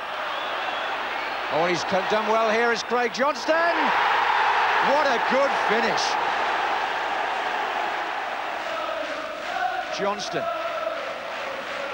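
A large crowd roars and cheers loudly outdoors.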